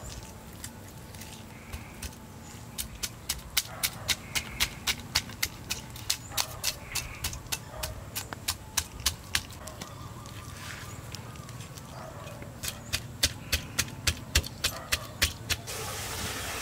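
A cleaver blade scrapes scales off a fish in quick rhythmic strokes.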